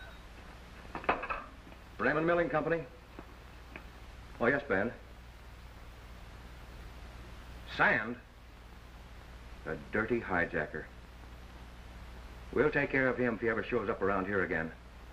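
A middle-aged man speaks into a telephone, pausing between phrases.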